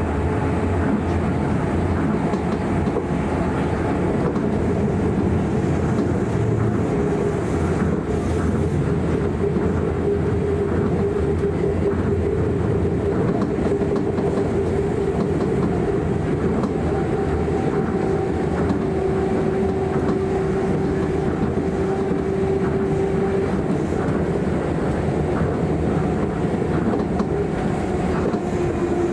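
A train hums and rumbles steadily along the track, heard from inside a carriage.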